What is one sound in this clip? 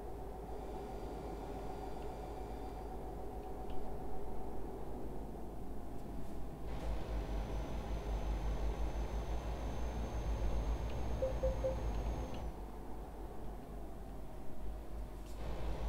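Tyres roll over a road.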